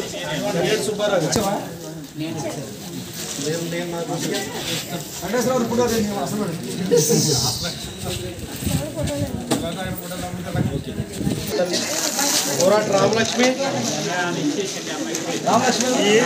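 A crowd of men and women murmurs in the background.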